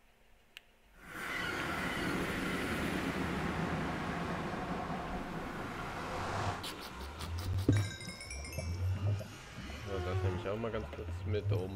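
Lava bubbles and roars steadily.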